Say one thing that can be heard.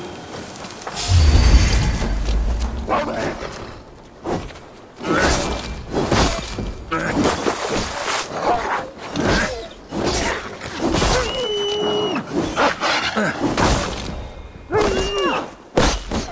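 Blades strike and slash in quick blows.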